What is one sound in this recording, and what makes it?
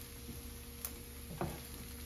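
A wooden spatula scrapes against a pan.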